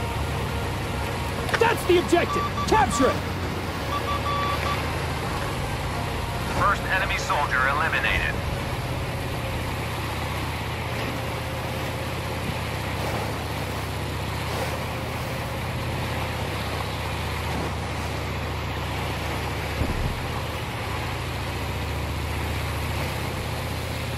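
Water splashes and sprays against a moving hull.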